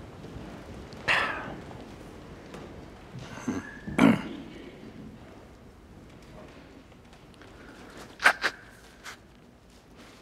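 An elderly man sniffs and breathes shakily while holding back tears.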